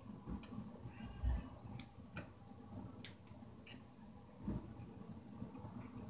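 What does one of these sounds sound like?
Pliers click and snip on wire.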